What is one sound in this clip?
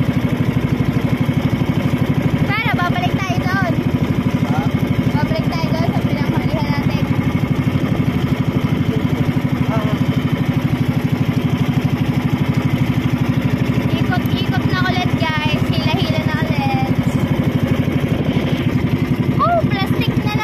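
A boat engine chugs steadily throughout.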